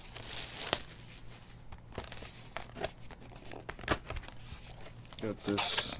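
Cardboard scrapes and rustles as a box is opened.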